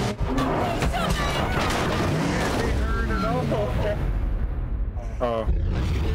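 A young woman cries out for help in distress.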